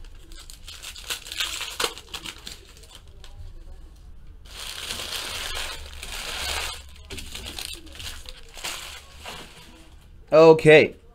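Foil wrappers crinkle and tear.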